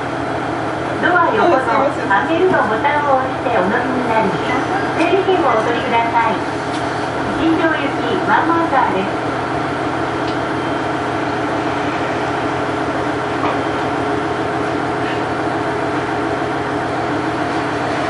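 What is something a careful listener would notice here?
A diesel train engine idles with a steady low rumble.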